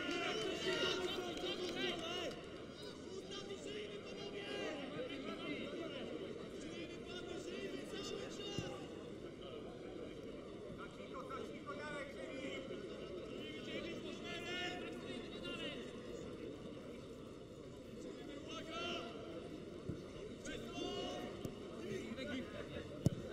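A large stadium crowd chants and sings.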